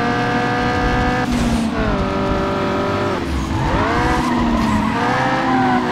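A racing car engine roars at high revs, its pitch dropping and climbing again with each gear change.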